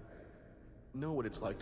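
A younger man speaks softly and sympathetically.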